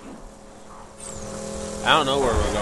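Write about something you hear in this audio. A vehicle engine rumbles.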